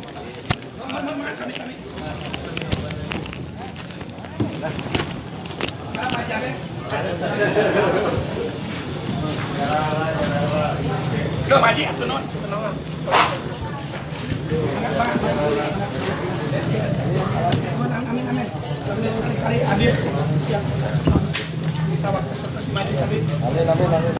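A crowd of men talks and murmurs close by in an echoing hall.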